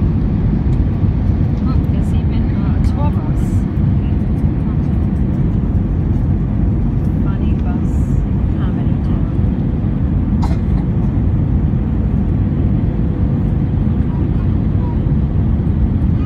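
A jet airliner's engines roar steadily, heard from inside the cabin.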